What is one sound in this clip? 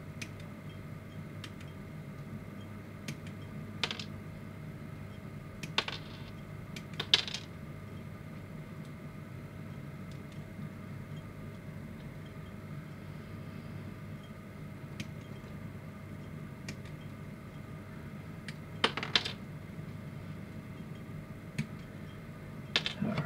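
Plastic parts click and rattle in someone's hands.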